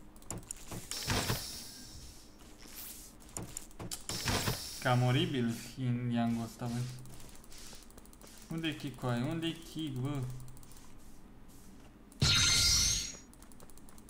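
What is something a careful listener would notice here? Game sound effects click and chime.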